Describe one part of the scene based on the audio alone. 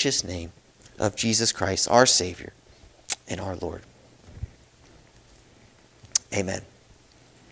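A young man speaks calmly into a microphone in a room with a slight echo.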